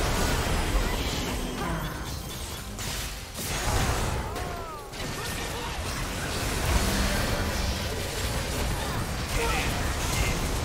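Magic spells crackle and burst in a fast video game battle.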